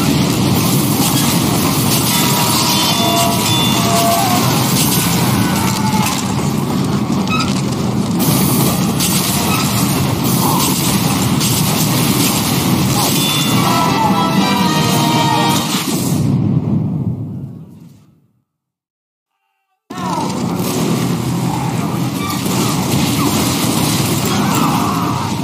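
Rockets blast and explode with loud booms.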